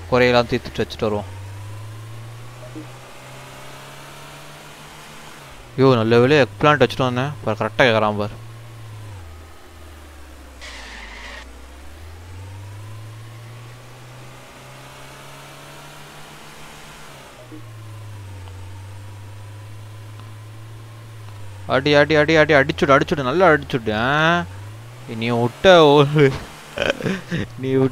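A car engine hums steadily, rising and falling in pitch as the car speeds up and slows down.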